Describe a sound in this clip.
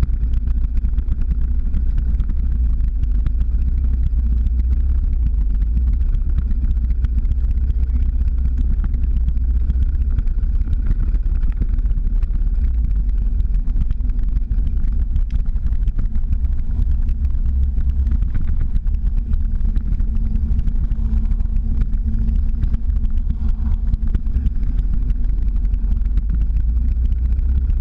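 Skateboard wheels roll and rumble on asphalt.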